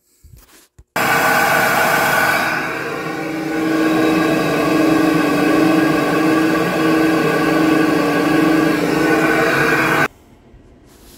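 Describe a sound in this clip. A test bench blower roars loudly and steadily, then cuts off.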